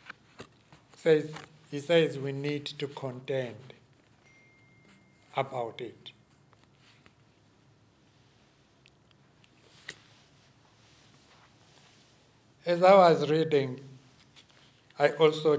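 An older man speaks calmly into a microphone, with long pauses.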